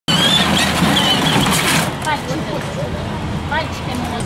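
Small electric toy cars whir along.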